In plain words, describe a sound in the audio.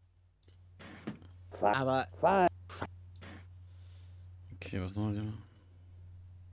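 A man talks with animation into a nearby microphone.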